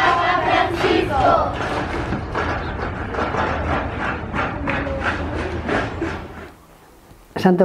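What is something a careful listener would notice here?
A crowd of young girls shouts and cheers together outdoors.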